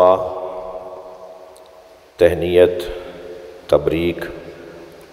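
A man speaks forcefully into a microphone, his voice amplified through loudspeakers and echoing around a large hall.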